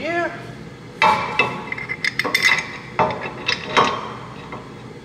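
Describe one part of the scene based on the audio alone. Metal parts clink and knock as a brake caliper is fitted by hand.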